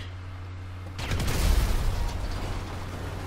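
Gunfire bursts loudly for a moment.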